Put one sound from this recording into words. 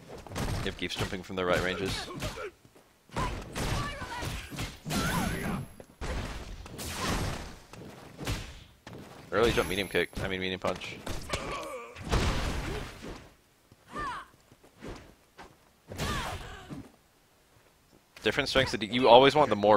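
Heavy punches and kicks land with loud thuds.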